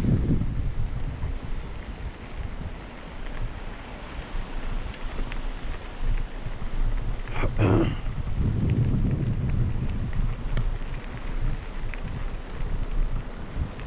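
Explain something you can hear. Tyres crunch over a gravel trail.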